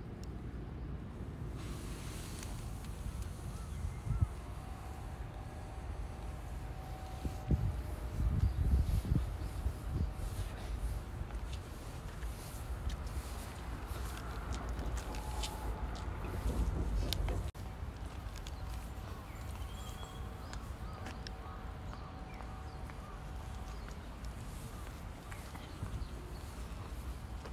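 Wind blows and rumbles steadily outdoors.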